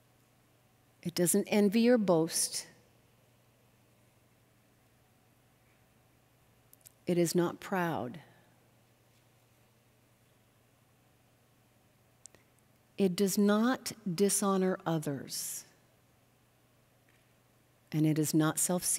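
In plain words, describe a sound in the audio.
A middle-aged woman reads aloud slowly and calmly into a microphone, pausing between phrases.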